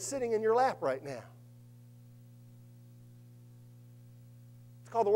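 A man speaks with animation through a microphone in a hall, pausing between phrases.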